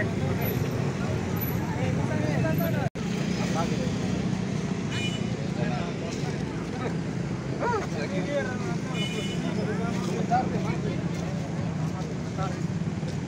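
A crowd of men talks and shouts over one another close by.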